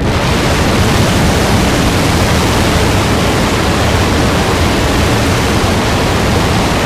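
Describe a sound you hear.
Loud, steady static hisses and crackles from a radio receiver.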